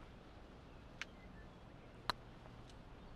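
A golf ball is struck with a putter with a light click.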